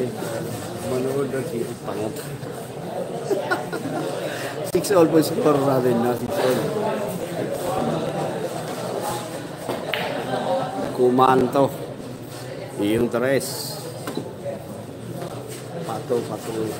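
A crowd of young men chatters and calls out nearby.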